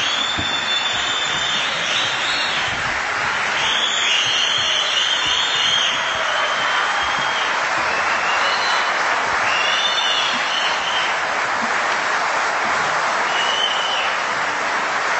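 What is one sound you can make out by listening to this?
Shrill whistles ring out from a crowd.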